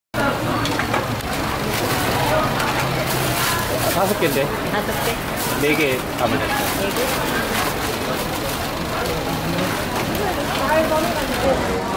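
Oil sizzles and crackles steadily on a hot griddle.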